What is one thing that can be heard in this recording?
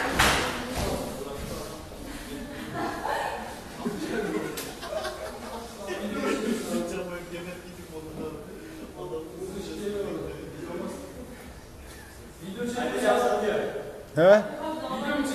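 Young men talk casually in an echoing hall.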